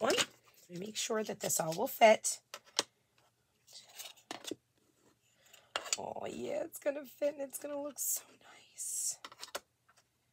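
Thin cardboard pieces tap softly on a wooden board.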